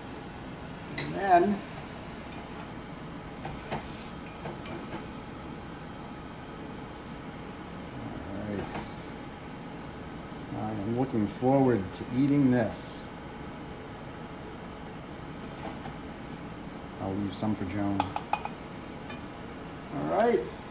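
A metal spatula scrapes against a frying pan.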